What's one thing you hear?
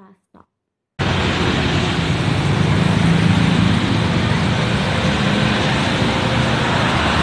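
Traffic rumbles by on a busy street, with motorbikes passing.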